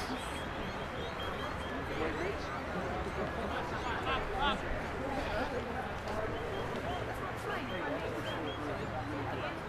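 Players shout and call to each other outdoors across an open field.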